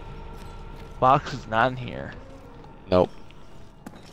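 A young man speaks briefly into a nearby microphone.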